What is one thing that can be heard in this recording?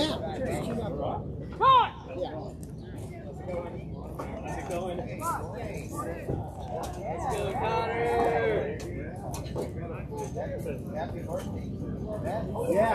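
Young players chatter and call out across an open field.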